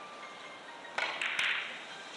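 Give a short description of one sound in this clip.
A cue strikes a billiard ball with a sharp tap.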